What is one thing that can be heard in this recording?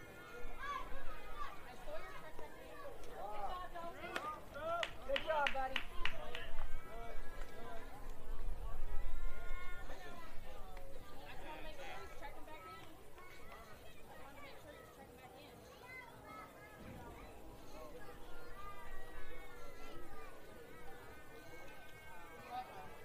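Young players and spectators shout and cheer outdoors.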